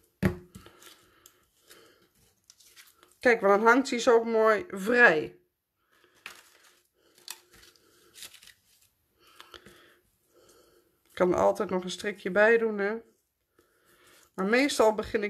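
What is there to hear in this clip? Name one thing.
Paper rustles and crinkles as it is folded and handled.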